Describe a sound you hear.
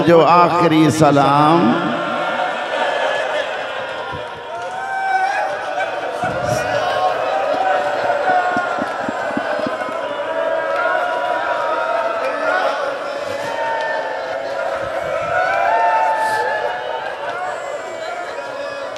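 A crowd of men chants loudly together in an echoing hall.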